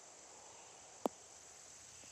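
A golf ball thuds as it lands on grass.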